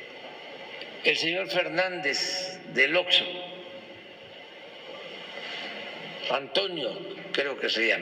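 An elderly man speaks firmly into a microphone, heard through a loudspeaker in a large room.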